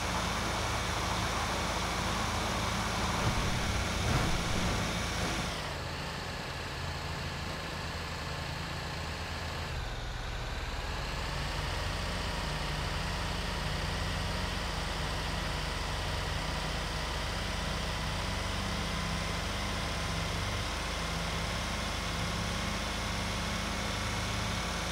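A heavy truck engine rumbles steadily as it drives along a road.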